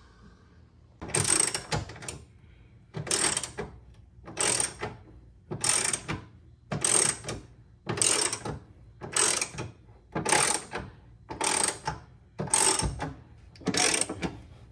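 A ratchet wrench clicks in quick bursts as it is worked back and forth.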